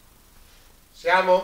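A man speaks loudly up close.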